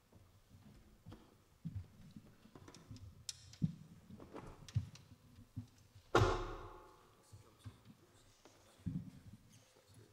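Instruments and music stands knock and clatter in an echoing hall.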